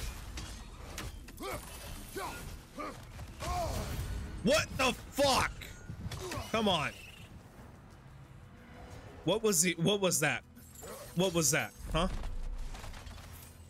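Weapons whoosh and clang in a fight.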